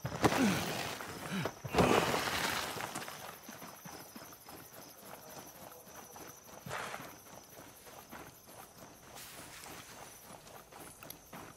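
Footsteps crunch quickly over loose rocky ground.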